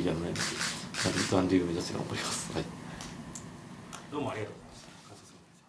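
A young man speaks calmly and softly into a close microphone.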